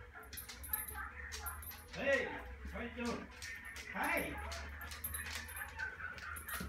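A large dog's claws click on a hardwood floor as it walks.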